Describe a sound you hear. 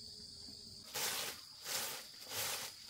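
A straw broom sweeps the ground in short, scratchy strokes.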